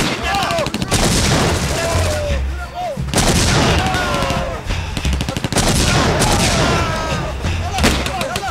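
A loud explosion booms and rumbles nearby.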